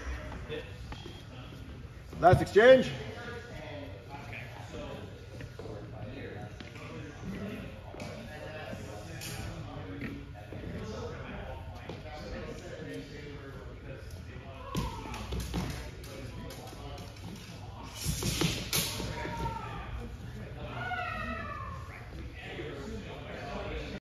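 Men talk nearby in an echoing hall.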